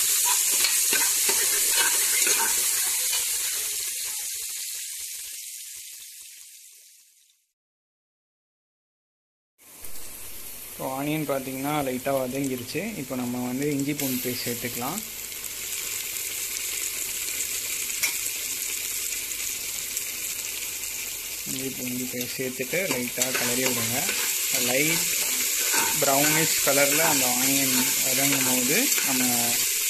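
A metal spatula scrapes against the bottom of a pot.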